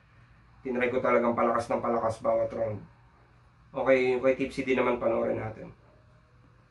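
A young man talks calmly and close by.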